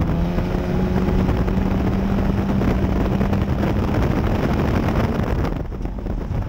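A race car engine roars loudly from inside the cockpit.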